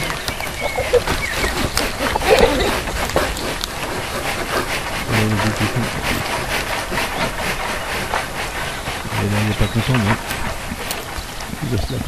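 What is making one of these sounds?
Wild boars root and snuffle in the soil close by.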